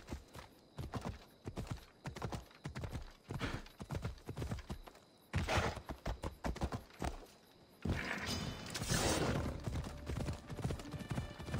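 Horse hooves thud rhythmically on dry ground.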